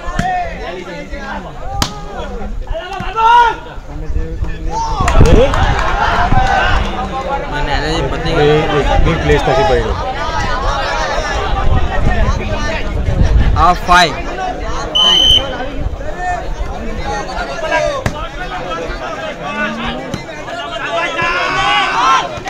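A large outdoor crowd shouts and cheers loudly.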